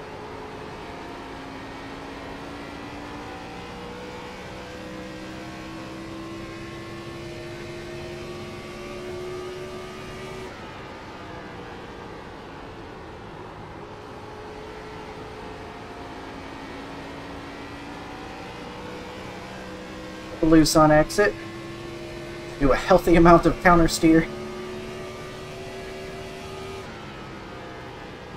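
A race car engine drones steadily, its pitch slowly rising and falling.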